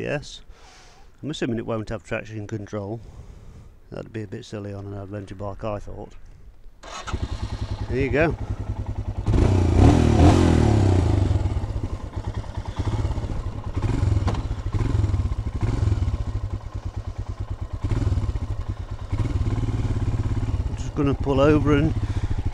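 A motorcycle engine runs with a deep, throbbing rumble and revs up.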